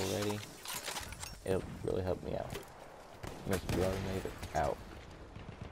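A machine gun fires rapid bursts of shots.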